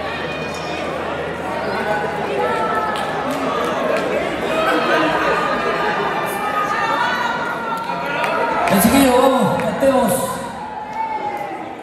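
A band plays electric guitars and drums in a large echoing hall.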